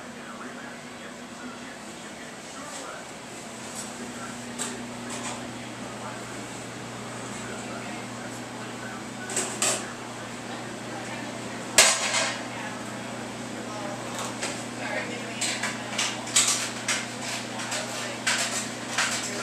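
A ventilation fan hums steadily.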